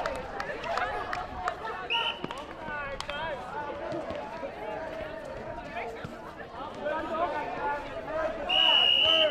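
Young women shout and call out to each other across an outdoor court.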